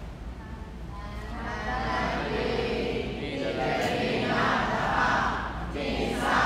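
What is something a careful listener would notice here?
A man speaks slowly and steadily into a microphone in a large echoing hall.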